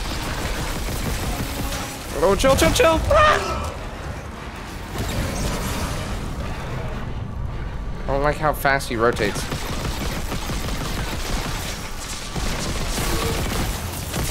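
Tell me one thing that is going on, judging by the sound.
A weapon fires bursts of energy shots.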